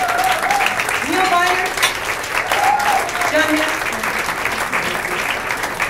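A jazz drum kit plays cymbals.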